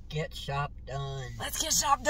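A middle-aged woman laughs.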